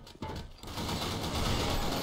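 Rapid gunshots fire from a rifle.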